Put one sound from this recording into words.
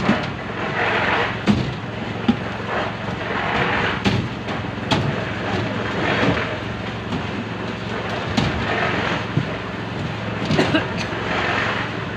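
Buckets knock and scrape as they are set down and passed along.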